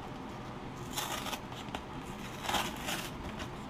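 A paper envelope rustles as it is opened.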